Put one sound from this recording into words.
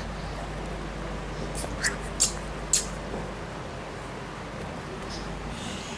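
A toddler sucks and drinks from a bottle.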